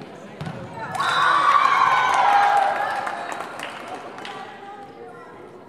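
A crowd of spectators cheers and shouts loudly.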